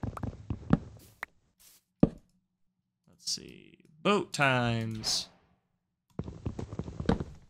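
Blocks of wood are hit and break with dull repeated knocks.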